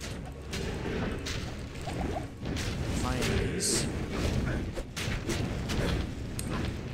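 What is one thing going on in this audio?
Magic spells crackle and burst in quick bursts.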